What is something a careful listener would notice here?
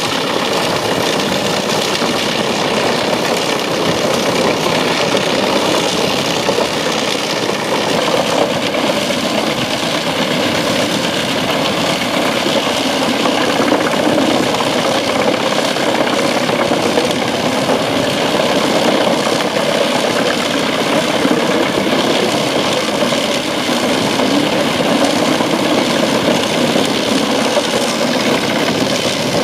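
Branches crunch and splinter as a wood chipper grinds them up.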